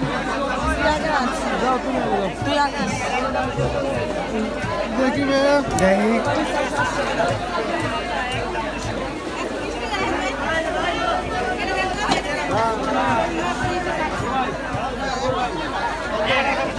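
A crowd of men and women chatter loudly all around, close by.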